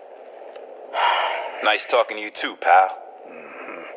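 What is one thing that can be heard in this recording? Another man speaks calmly nearby.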